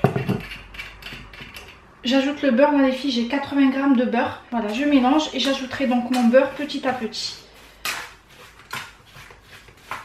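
A fork scrapes and clinks against a metal bowl while mixing.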